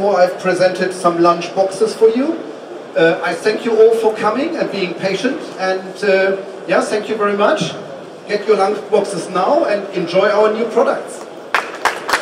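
A man speaks calmly and clearly through a headset microphone.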